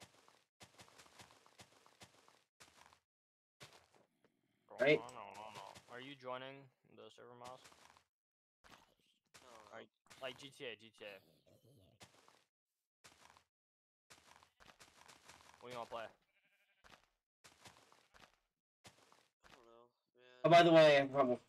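Blocks are placed with quick soft clicks.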